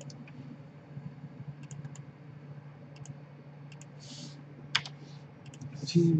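Computer keys and a mouse click.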